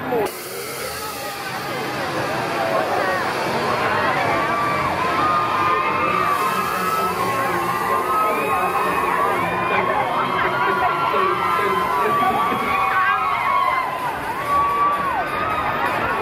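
Many people chatter loudly in a crowd.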